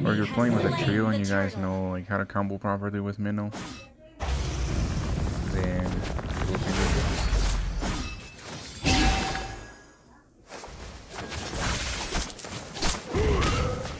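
Video game combat effects clash and whoosh.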